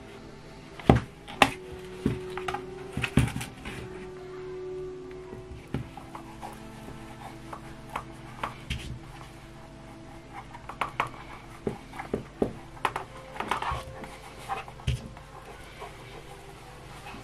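Fingers rub and tap on leather.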